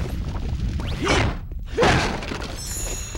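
A staff swishes through the air in a swing.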